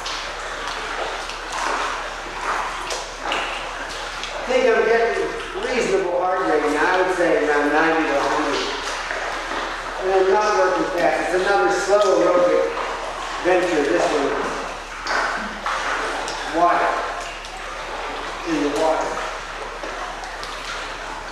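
Water splashes and sloshes nearby.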